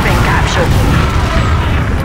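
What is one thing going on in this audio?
Gunfire rattles.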